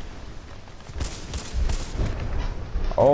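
Gunfire and explosions boom loudly, close by.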